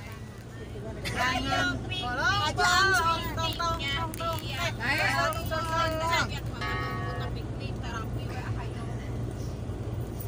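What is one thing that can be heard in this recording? Women chat and laugh cheerfully close by.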